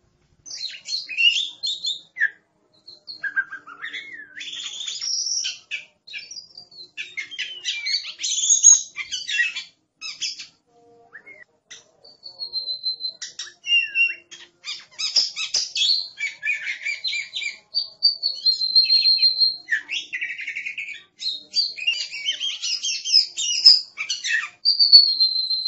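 A songbird sings a varied run of whistles, trills and chirps up close.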